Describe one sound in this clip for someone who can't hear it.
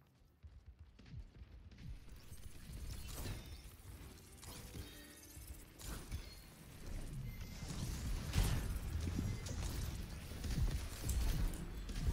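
Video game weapons fire and blast in quick bursts.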